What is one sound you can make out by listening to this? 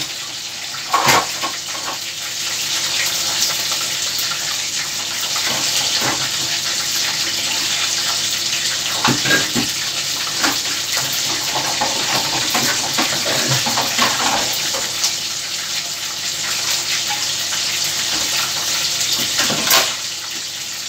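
Things clatter in a sink.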